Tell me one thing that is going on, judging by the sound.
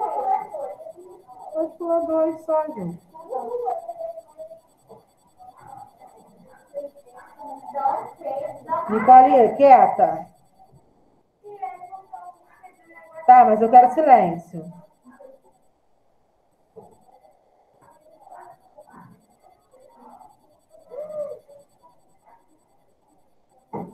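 A woman speaks calmly through a computer microphone, in short bursts with pauses.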